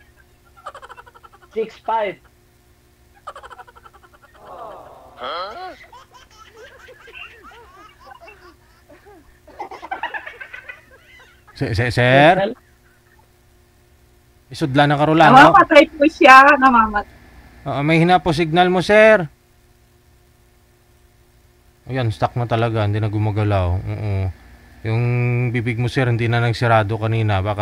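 An older man talks over an online call.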